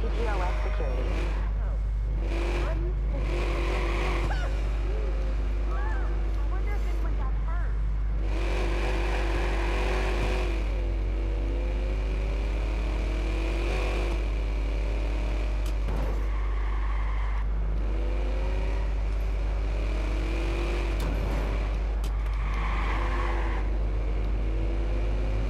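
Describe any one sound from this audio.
A car engine hums and revs up and down as it drives.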